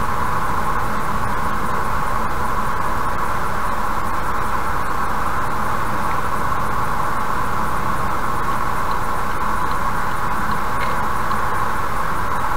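A car drives fast along a highway with a steady roar of tyres and engine.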